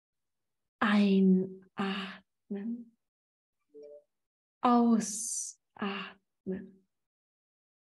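A middle-aged woman speaks calmly, close to the microphone, heard over an online call.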